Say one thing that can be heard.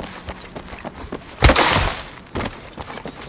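A character slides along the ground with a rushing scrape.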